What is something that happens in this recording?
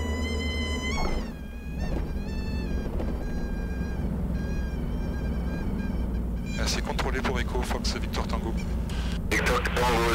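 Tyres rumble over the runway.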